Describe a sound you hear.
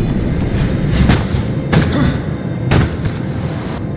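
Heavy thuds land as a game character jumps and grabs ledges.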